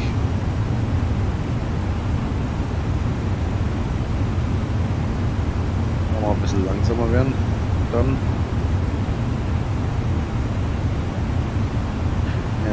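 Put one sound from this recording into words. Jet engines drone with a steady, deep rumble.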